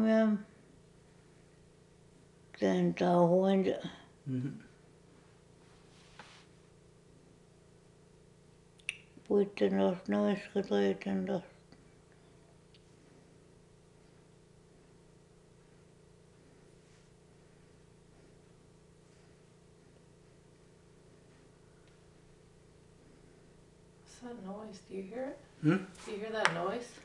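An elderly woman speaks calmly and slowly, close by, with long pauses.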